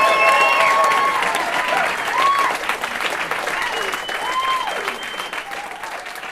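Audience members whistle loudly.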